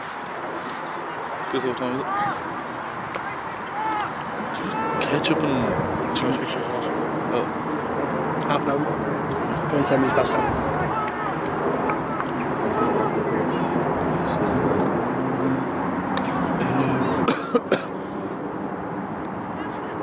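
A crowd of players and spectators chatters and calls out.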